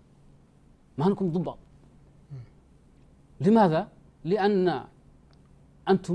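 A middle-aged man speaks calmly in short phrases into a microphone, with pauses between them.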